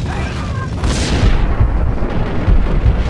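A gun fires a short burst.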